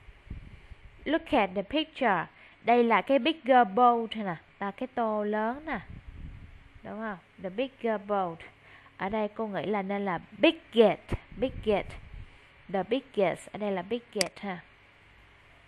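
A woman speaks clearly and slowly, as if teaching, over an online call.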